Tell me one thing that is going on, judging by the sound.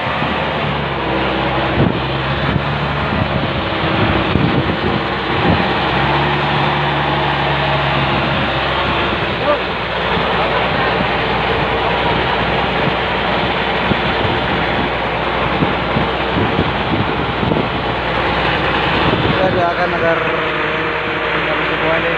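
A boat engine chugs steadily.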